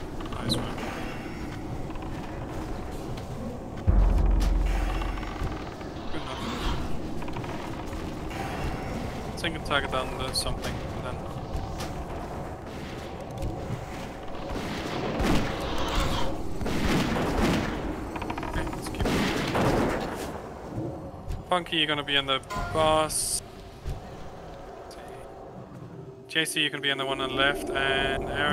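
Spell effects and weapon clashes ring out in a busy battle.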